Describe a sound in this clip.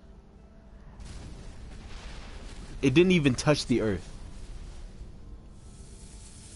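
A deep explosion roars and rumbles.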